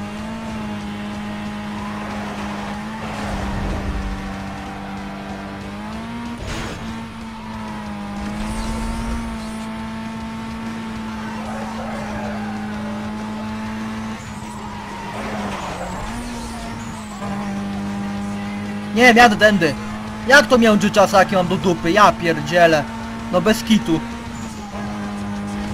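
A racing car engine drones at high speed, its pitch dipping briefly at each gear change.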